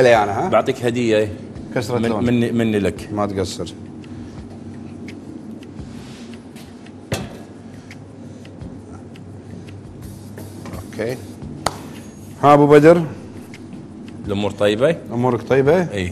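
An older man talks calmly into a microphone.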